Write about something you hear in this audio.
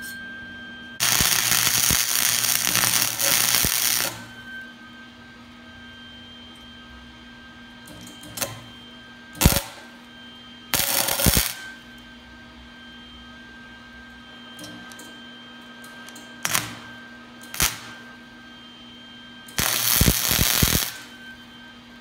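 An arc welder crackles and sizzles loudly in bursts.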